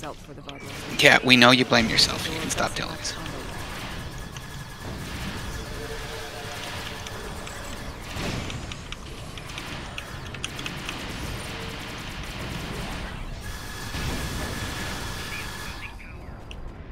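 Energy blasts and magic effects crackle and whoosh.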